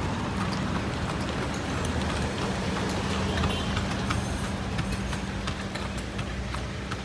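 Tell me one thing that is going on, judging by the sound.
A car engine hums low and steady nearby.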